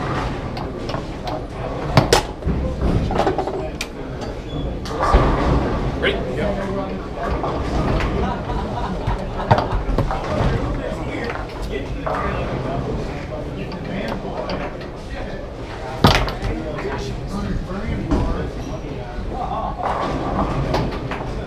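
Foosball rods clack and the ball knocks sharply against the table.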